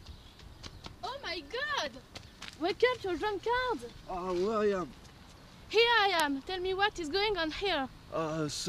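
A young woman shouts and squeals excitedly nearby.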